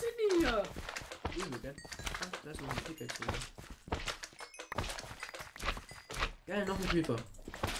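Squishy squelching thuds sound as a sword strikes bouncing slimes.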